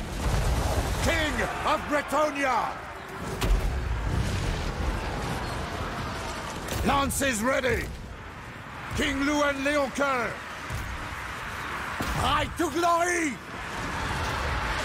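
Many soldiers clash and shout in a distant battle.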